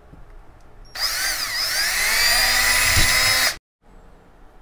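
A power drill whirs as it bores into a plastic tube.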